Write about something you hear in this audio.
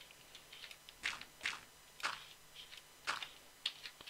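A pickaxe digs into dirt and stone with soft, repeated crunches.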